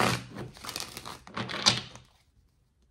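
Cards shuffle and riffle in a woman's hands.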